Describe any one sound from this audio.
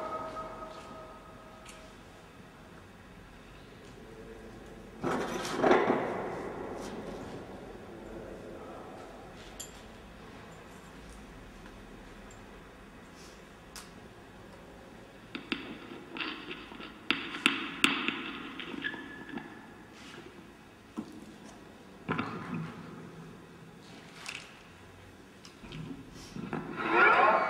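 An electric instrument laid flat rings out in bursts of tones as its strings are plucked and tapped.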